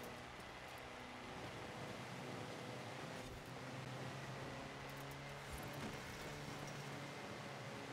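Tyres hiss and crunch over snow.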